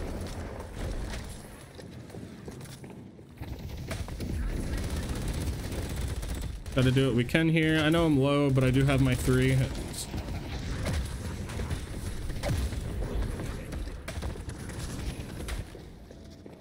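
Weapons fire and energy blasts crackle in quick bursts.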